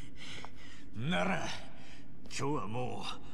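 A man speaks gruffly, close by.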